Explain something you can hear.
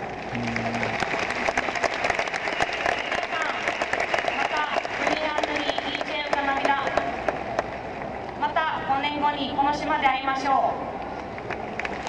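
A young woman speaks through a loudspeaker outdoors.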